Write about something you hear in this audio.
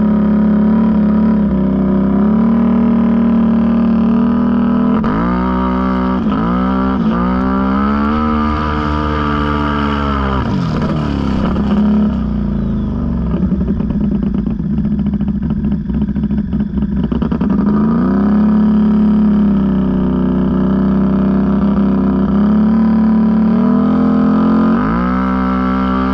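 An ATV engine roars up close and revs up and down.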